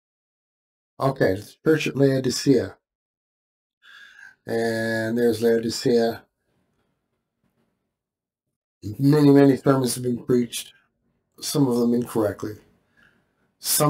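A middle-aged man speaks calmly and closely into a microphone.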